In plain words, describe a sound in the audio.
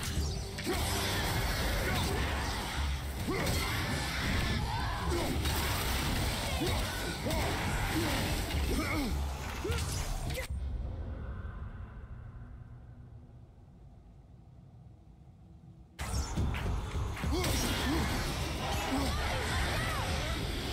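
An axe strikes enemies with heavy thuds.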